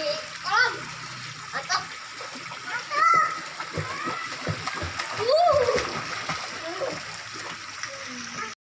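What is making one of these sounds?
Young children shout and squeal playfully nearby, outdoors.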